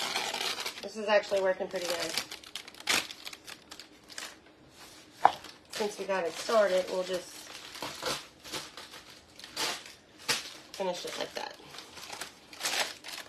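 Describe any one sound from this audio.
Paper towels crinkle and rustle.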